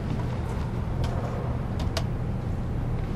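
A plastic card clicks softly as fingers handle it.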